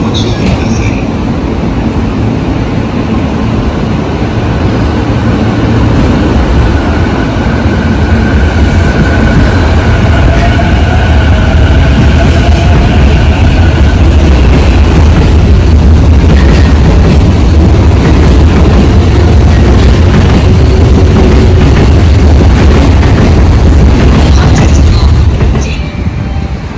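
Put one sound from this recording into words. A train rumbles past close by with a heavy, steady roar.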